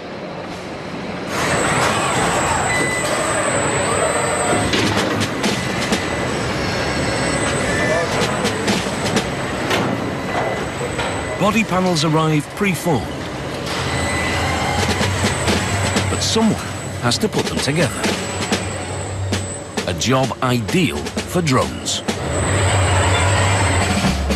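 Machinery hums steadily in a large echoing factory hall.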